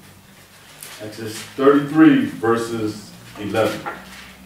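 A man reads aloud calmly, close by.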